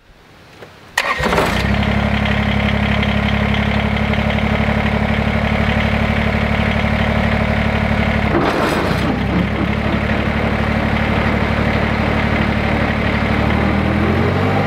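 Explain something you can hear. A tractor engine starts and runs with a steady diesel rumble.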